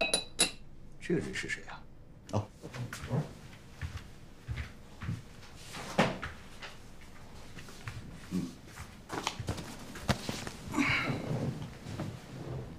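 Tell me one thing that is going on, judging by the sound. Another middle-aged man answers in a low, firm voice.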